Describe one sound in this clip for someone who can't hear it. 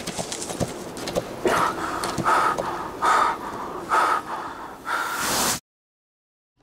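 A man breathes heavily.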